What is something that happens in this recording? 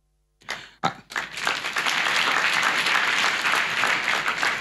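An audience claps and applauds steadily.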